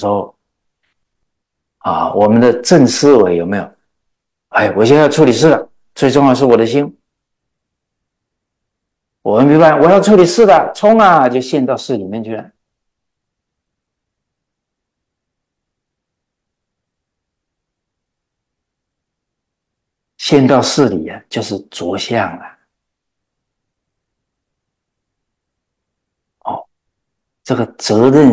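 An elderly man speaks calmly with animation into a close microphone, pausing often.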